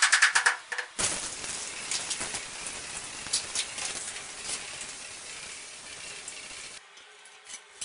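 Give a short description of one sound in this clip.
A spray bottle hisses as it sprays water.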